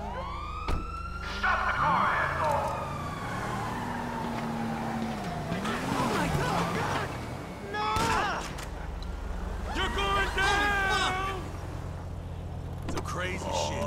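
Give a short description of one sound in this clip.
A car engine revs and hums as the car drives off.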